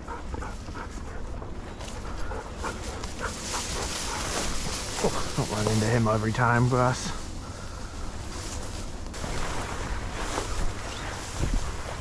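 Wind blows over an open field.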